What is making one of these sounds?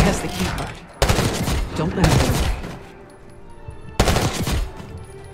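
Gunshots bang loudly.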